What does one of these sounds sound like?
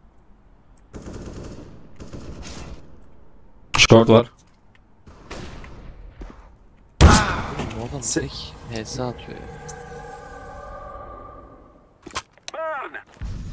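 A young man talks with animation through a close microphone.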